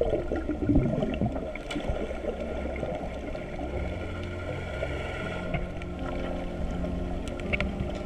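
Water swirls and rushes, heard muffled underwater.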